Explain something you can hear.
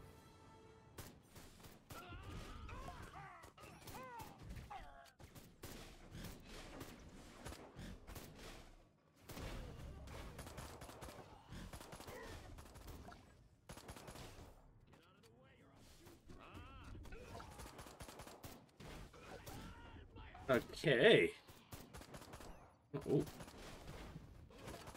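Gunfire and energy blasts crackle and pop in quick bursts.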